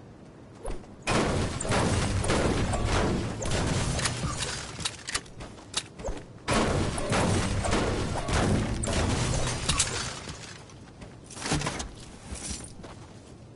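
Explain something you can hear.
A pickaxe bangs repeatedly against a car's metal body.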